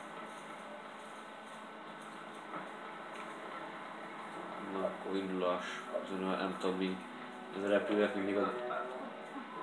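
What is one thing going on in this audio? Video game sounds play from a television speaker.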